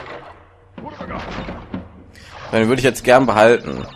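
A wooden crate smashes apart.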